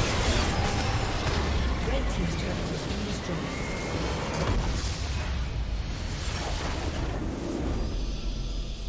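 Game spell effects and explosions crash and boom loudly.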